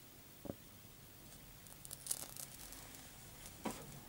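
A spirit stove catches light with a soft whoosh.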